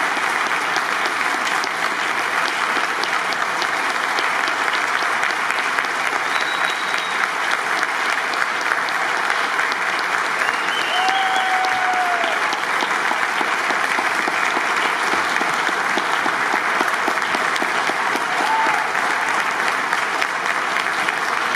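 A large audience applauds steadily in a hall.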